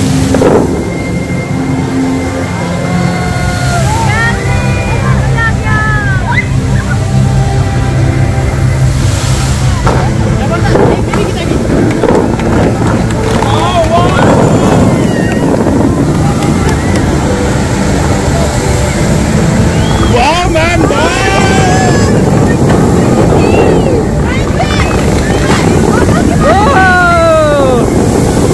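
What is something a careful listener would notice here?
Fountain jets of water rush and splash down in a steady roar.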